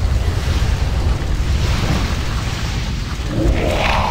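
A fire breath roars steadily.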